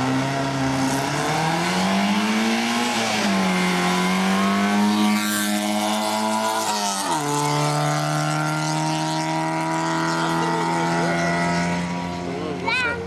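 A car engine revs hard as the car speeds away, roars past close by and fades into the distance.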